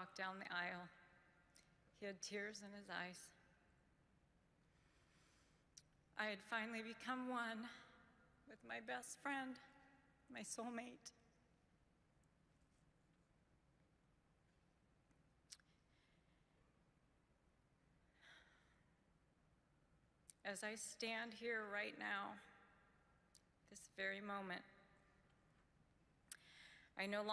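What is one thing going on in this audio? A woman speaks slowly and softly into a microphone, with long pauses.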